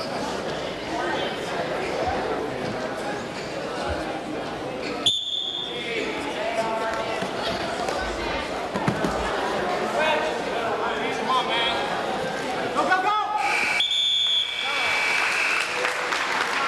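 A crowd shouts and cheers in an echoing hall.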